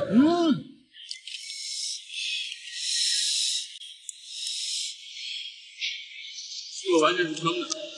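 A young man slurps oysters noisily.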